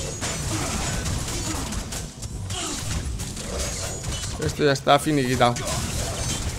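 Video game combat effects clash and whoosh.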